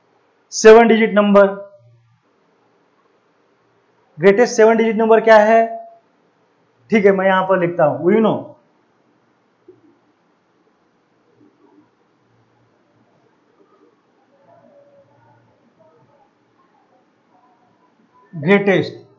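A man speaks clearly into a close microphone, explaining in short bursts.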